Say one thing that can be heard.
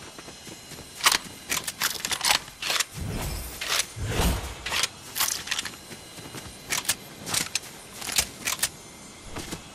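Quick footsteps patter through grass and over earth.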